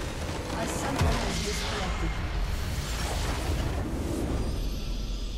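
A structure in the game shatters with a loud burst.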